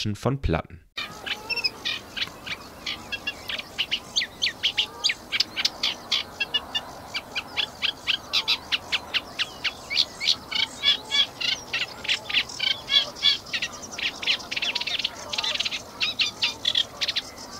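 A small bird sings a rapid, scratchy chattering song close by.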